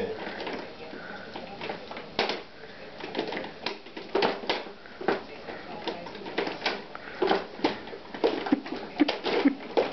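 A plastic push toy clacks and knocks now and then.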